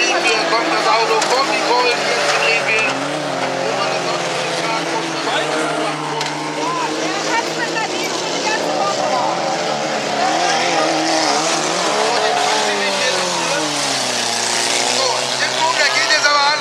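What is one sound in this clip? Car tyres skid and spray on loose dirt.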